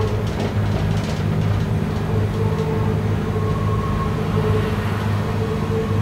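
An oncoming train passes close by.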